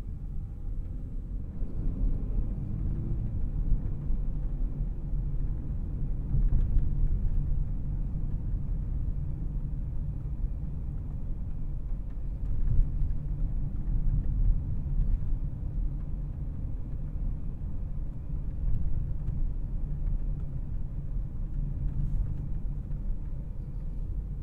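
Tyres roll on asphalt, heard from inside the car.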